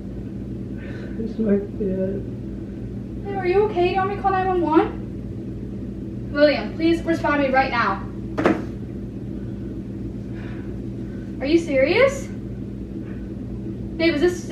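A woman speaks nearby in short, lively bursts.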